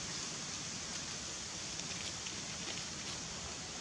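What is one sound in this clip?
Dry leaves rustle faintly under a monkey's feet.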